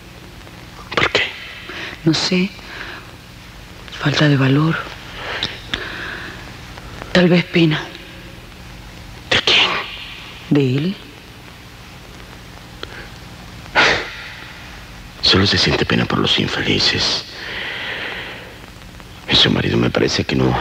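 A middle-aged man speaks in a low, calm voice, close by.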